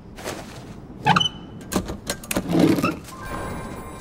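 A small wooden drawer slides open with a click.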